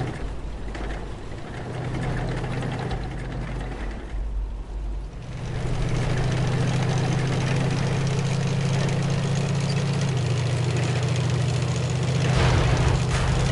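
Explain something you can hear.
A tank engine rumbles steadily, growing louder as the tank drives forward.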